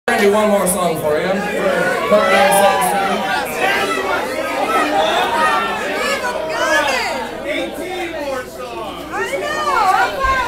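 A crowd cheers, shouts and whistles loudly in an echoing room.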